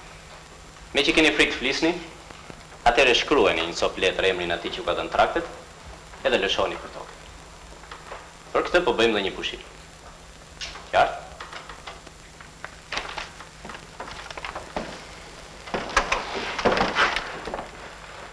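An adult man speaks in short bursts.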